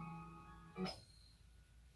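A video game plays a short electronic tune.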